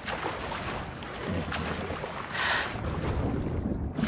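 Water splashes and bubbles close by.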